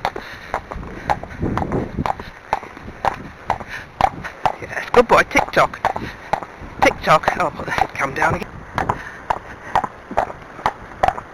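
Horse hooves clop steadily on a wet paved lane.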